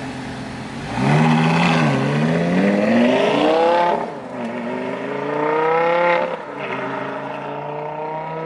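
A sports car engine roars loudly as it accelerates away, rising in pitch through the gears.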